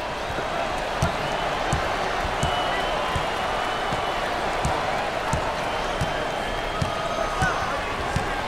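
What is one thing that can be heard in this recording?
A basketball bounces repeatedly on a hardwood floor.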